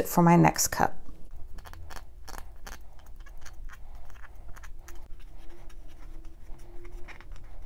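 Fingers rub and tap against a plastic bottle.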